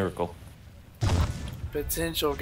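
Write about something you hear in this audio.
Laser cannons fire with a sharp, loud burst.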